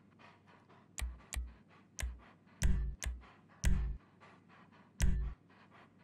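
Menu selections click with soft thuds.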